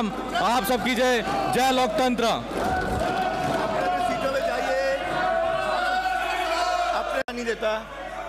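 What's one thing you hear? A man shouts loudly through a microphone in a large hall.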